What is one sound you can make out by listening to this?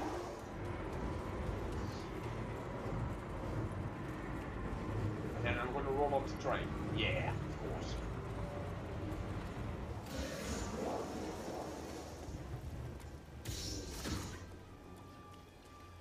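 A heavy low rumble drones steadily.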